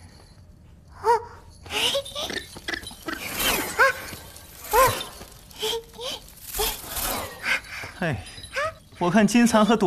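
A young girl talks with animation, close by.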